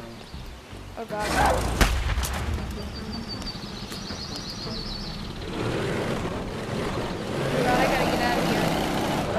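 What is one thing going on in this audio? A small go-kart engine hums as the kart drives.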